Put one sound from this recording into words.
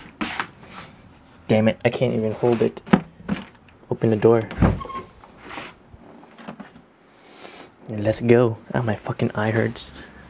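A plastic bottle crinkles in a hand.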